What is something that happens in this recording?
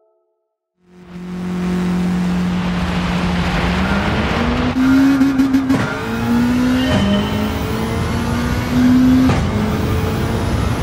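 A rally car engine idles, then revs and races along a dirt track, shifting up through the gears.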